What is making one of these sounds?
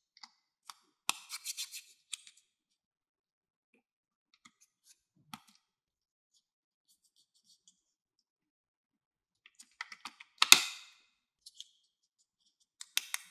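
Small plastic toy pieces click and clatter as they are snapped together.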